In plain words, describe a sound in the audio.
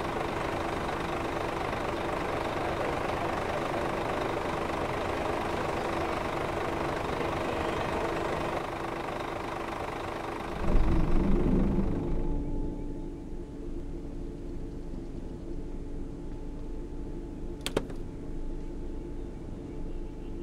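A bus engine idles steadily.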